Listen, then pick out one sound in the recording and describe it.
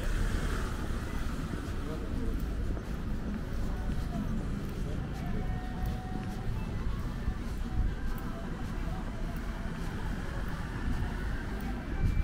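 Footsteps tap on a paved sidewalk.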